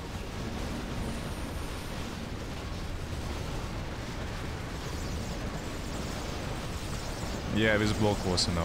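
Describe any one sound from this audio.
Game battle sounds clash and rumble.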